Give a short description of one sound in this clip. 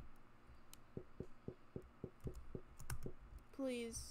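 Soft footsteps tap at an even pace.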